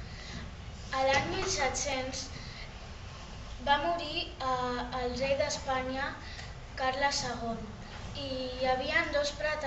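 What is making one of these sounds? A young boy speaks calmly, close by.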